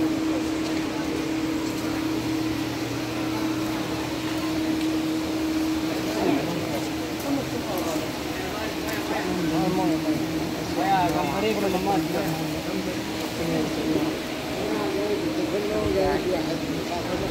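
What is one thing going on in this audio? Many voices chatter and murmur in a large, echoing hall.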